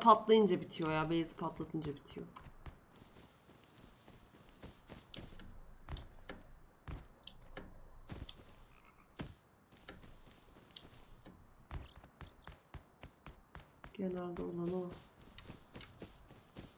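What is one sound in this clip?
Footsteps crunch steadily over grass and rock.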